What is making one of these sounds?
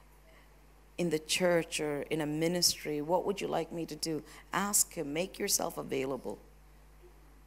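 A woman speaks with feeling through a microphone in a large echoing hall.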